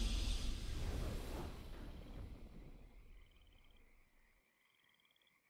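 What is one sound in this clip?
A triumphant game fanfare booms loudly and then fades away.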